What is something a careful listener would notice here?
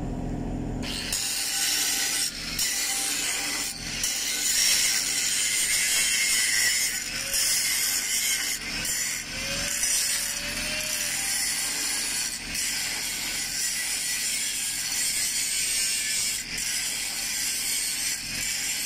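An angle grinder grinds loudly against a metal pipe.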